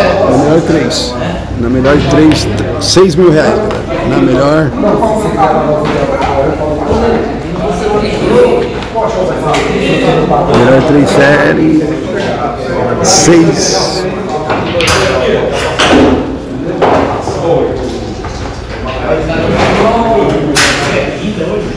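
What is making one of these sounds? A cue tip strikes a billiard ball.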